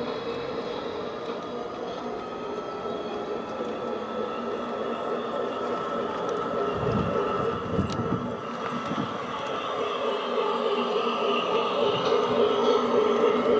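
A model train hums and clatters steadily along its track.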